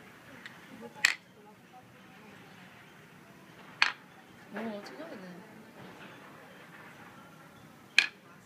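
Wooden blocks clack sharply against each other.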